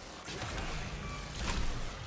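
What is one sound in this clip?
Magic bolts crackle and burst.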